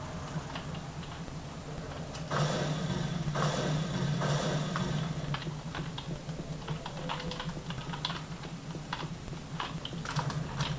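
Game gunfire and effects play through desktop speakers.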